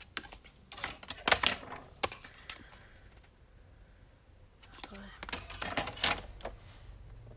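Stiff card taps and knocks on a table.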